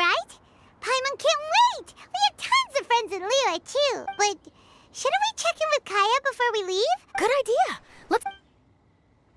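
A young girl's voice speaks brightly and with animation, close up.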